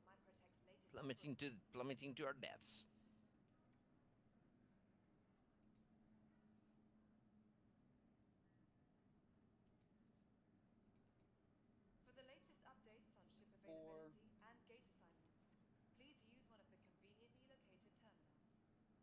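A man talks calmly into a headset microphone, close by.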